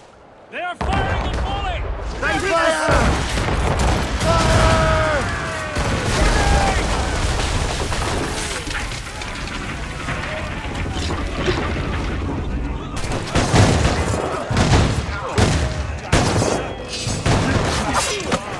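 Cannons boom in heavy, rumbling blasts.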